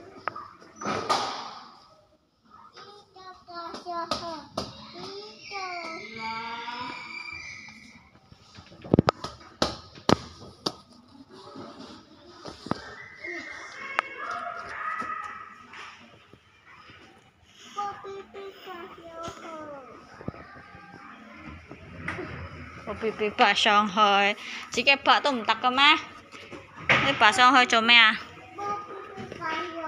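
A young child talks and squeals nearby.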